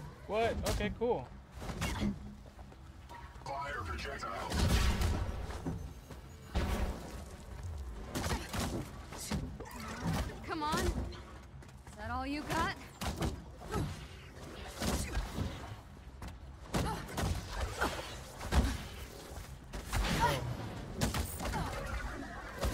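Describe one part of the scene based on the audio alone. Blows and impacts thud and crack repeatedly in a fight.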